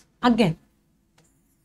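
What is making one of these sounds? A young woman speaks briefly and calmly close to a microphone.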